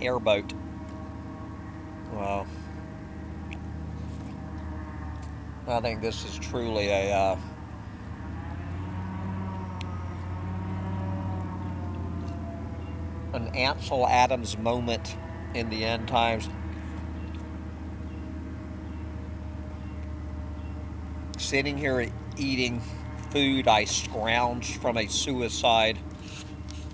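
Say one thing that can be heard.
An elderly man talks calmly and close by, outdoors.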